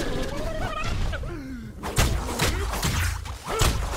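Blows land with sharp impacts.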